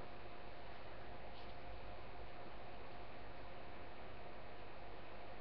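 Hands rustle softly through long hair.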